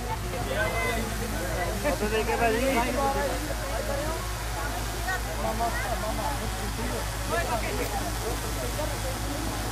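A young woman speaks into a microphone, heard through loudspeakers.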